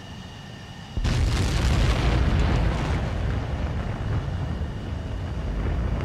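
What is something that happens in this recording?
A twin-engine jet fighter roars at full throttle on takeoff.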